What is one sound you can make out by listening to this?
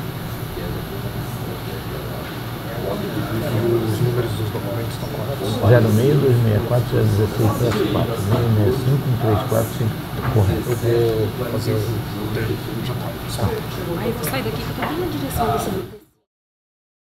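Several men talk in a room that echoes a little.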